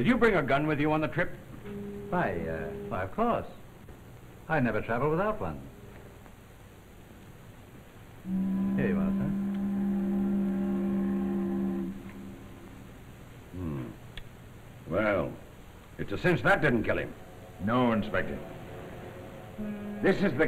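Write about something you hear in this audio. Middle-aged men speak in turn in calm voices, close by.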